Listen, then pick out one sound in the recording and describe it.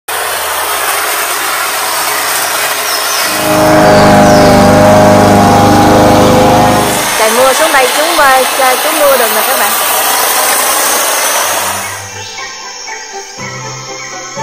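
An electric hedge trimmer buzzes while cutting leaves.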